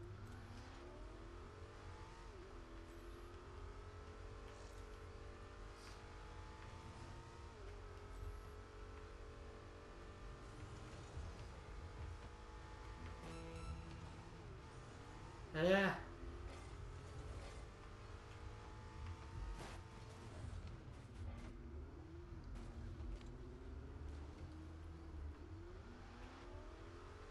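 A car engine hums and revs steadily, rising and falling in pitch.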